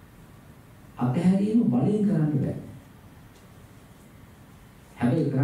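A middle-aged man speaks calmly into a microphone, in a room with a slight echo.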